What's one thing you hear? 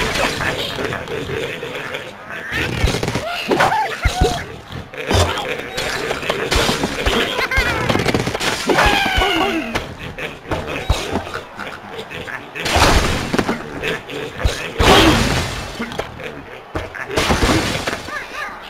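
Wooden and glass blocks crash and clatter as a structure collapses.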